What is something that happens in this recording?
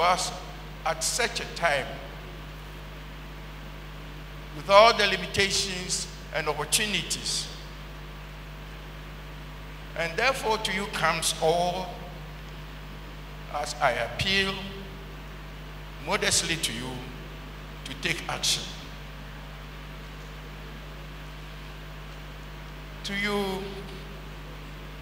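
An elderly man speaks slowly and solemnly into a microphone, in short phrases with pauses, in a reverberant hall.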